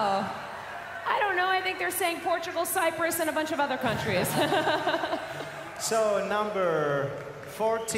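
A young man speaks cheerfully through a microphone.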